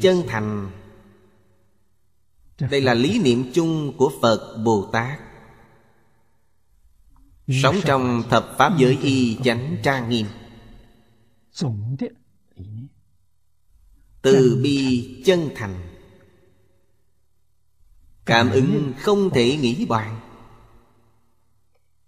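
An elderly man speaks calmly and slowly into a close microphone, in short phrases with pauses.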